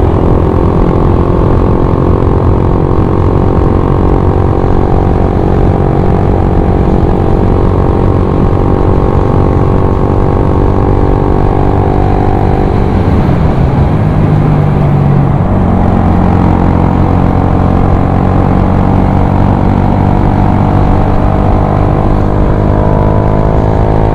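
A scooter engine hums steadily, easing off briefly and then picking up again.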